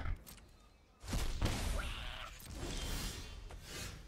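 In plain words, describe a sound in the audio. A game chime rings out.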